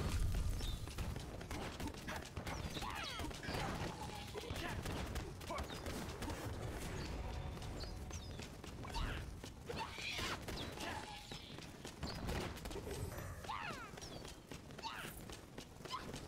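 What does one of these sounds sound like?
Rapid game gunfire and magic blasts crackle and burst.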